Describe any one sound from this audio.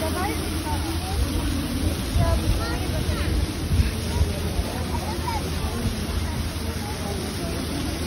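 Distant voices of a crowd murmur outdoors.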